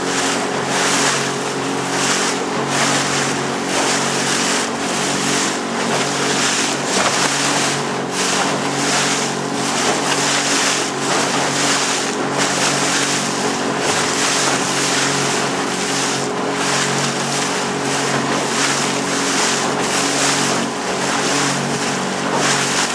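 Ocean waves break and wash against rocks.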